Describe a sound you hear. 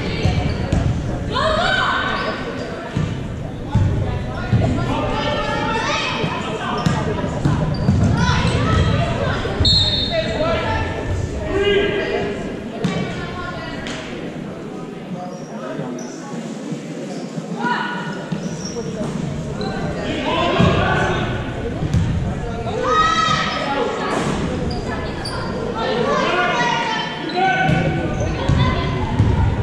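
Voices of a crowd of spectators shout and cheer in a large echoing gym.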